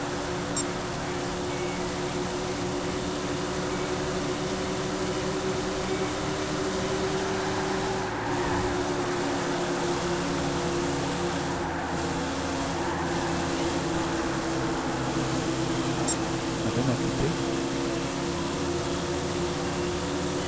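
A V8 stock car engine drones at full throttle.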